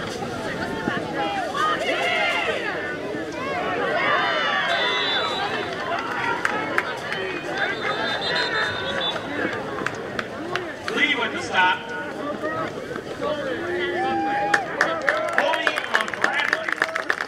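A crowd of young women and girls shouts and cheers outdoors.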